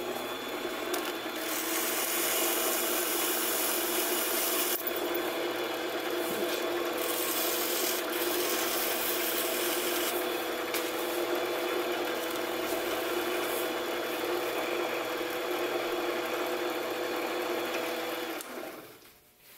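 A lathe spindle hums steadily as it spins.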